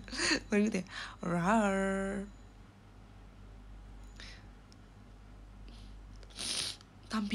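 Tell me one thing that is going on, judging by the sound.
A young woman speaks close to the microphone, drawing out some words in a sing-song way.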